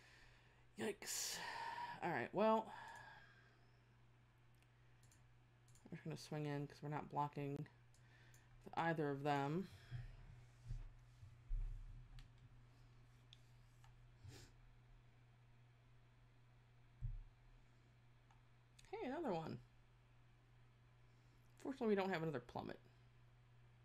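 A woman talks calmly into a microphone in short bursts.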